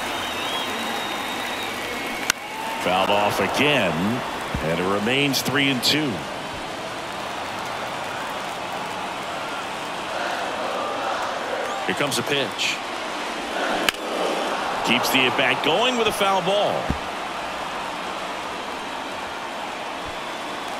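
A large crowd murmurs and cheers steadily in a big open stadium.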